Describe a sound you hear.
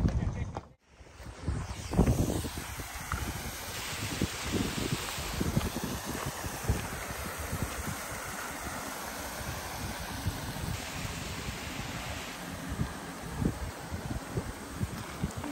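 Water flows and splashes over rocks.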